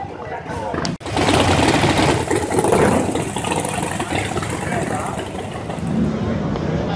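A second motorcycle engine rumbles as it rolls slowly through the crowd.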